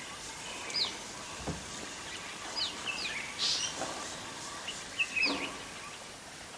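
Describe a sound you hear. A small bird chirps in short, sharp calls.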